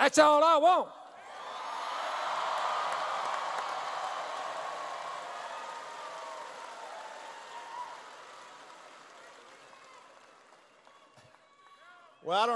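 A large crowd cheers and applauds.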